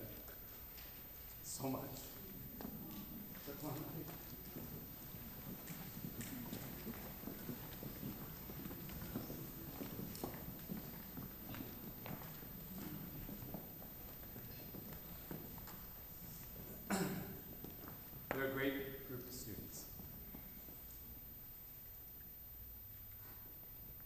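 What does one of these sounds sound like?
Audience members murmur quietly in a large echoing hall.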